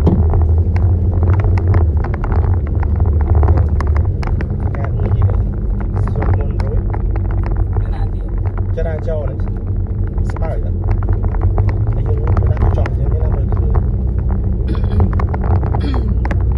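A car drives along a rough concrete road, heard from inside the car.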